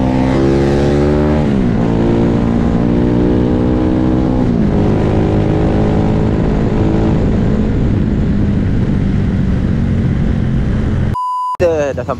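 A motorcycle engine roars at speed, dropping in pitch as it shifts gears.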